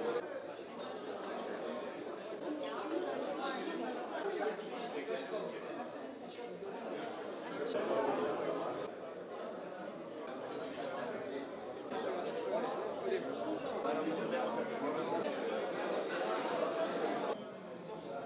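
Men and women chatter indoors in a murmuring crowd.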